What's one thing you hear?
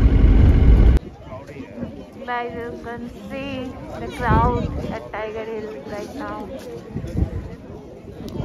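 A crowd of people talks and calls out outdoors.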